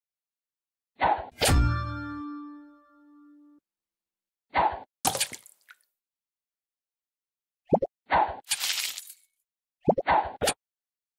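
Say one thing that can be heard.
A game bubble shoots off with a short whoosh.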